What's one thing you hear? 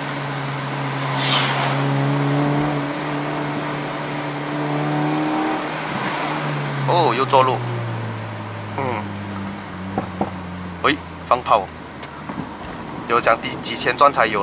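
A car engine hums steadily from inside the car, then drops in pitch as the car slows.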